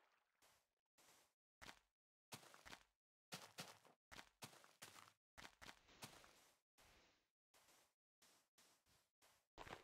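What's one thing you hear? Footsteps crunch on grass and sand.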